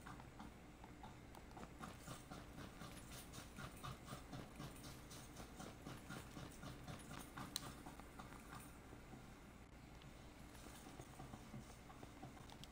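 Footsteps run over concrete.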